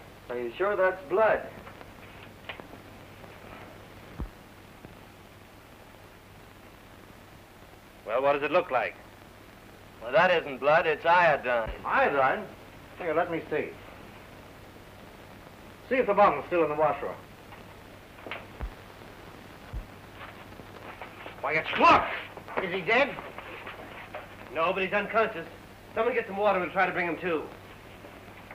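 Several men talk in short, tense exchanges.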